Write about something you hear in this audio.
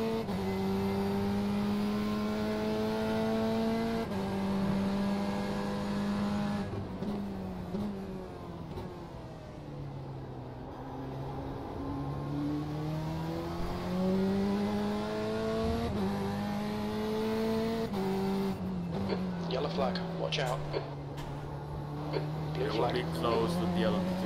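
A racing car engine roars, revving up and dropping with each gear change.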